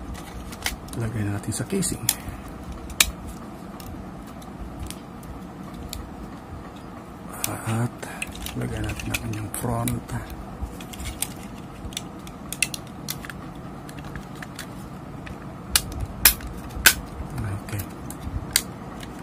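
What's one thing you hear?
A plastic controller housing clicks and snaps as it is handled and fitted together.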